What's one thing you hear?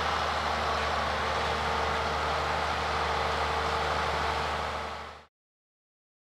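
A tractor engine runs with a steady hum and rumble.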